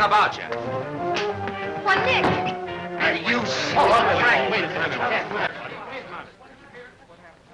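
Several people shout excitedly during a scuffle.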